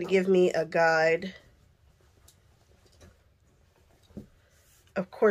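Fabric rustles and slides across a cutting mat.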